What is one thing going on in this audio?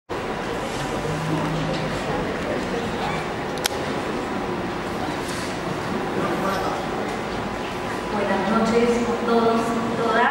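A woman reads out calmly into a microphone in a room that echoes.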